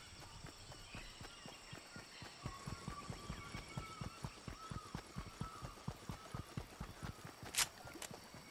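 Quick footsteps patter on a dirt path.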